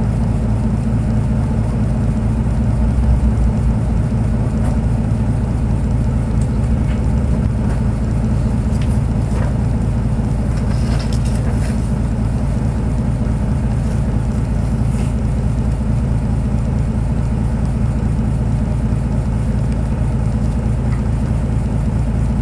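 A car engine idles with a steady low rumble, heard from inside the car.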